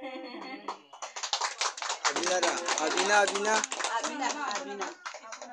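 A group of children and adults sing together loudly.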